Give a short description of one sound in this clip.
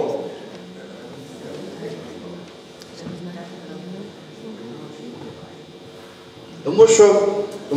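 People in an audience murmur quietly.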